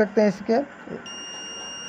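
A multimeter beeps with a steady high tone.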